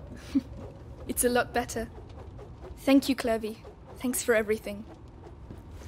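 A young woman speaks softly and gratefully.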